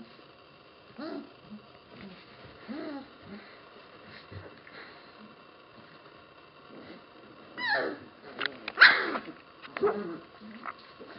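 Puppies whimper and yelp nearby.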